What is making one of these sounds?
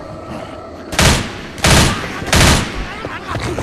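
A gun fires a few loud shots close by.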